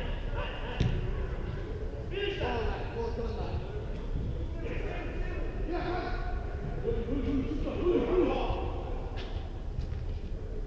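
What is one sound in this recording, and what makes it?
Men shout and call out to each other across a large echoing hall.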